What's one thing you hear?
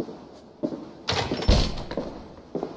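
A heavy wooden door bangs open.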